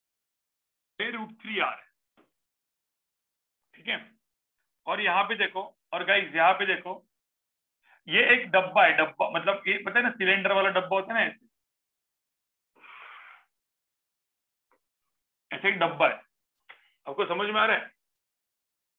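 A man explains calmly through a microphone, in short bursts with pauses.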